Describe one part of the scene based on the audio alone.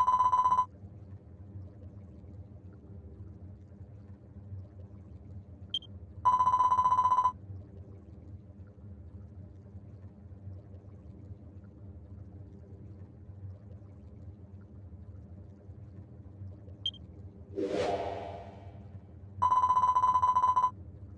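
Lava rumbles low and steady.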